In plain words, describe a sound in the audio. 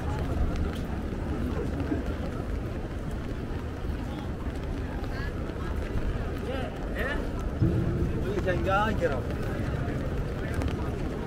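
Footsteps tap on wet paving stones.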